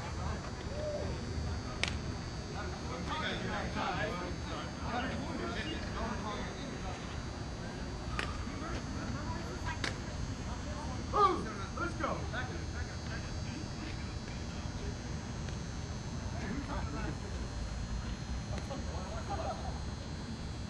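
Men call out and chat at a distance across an open field.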